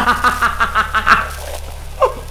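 A man laughs loudly in a manic, cackling way.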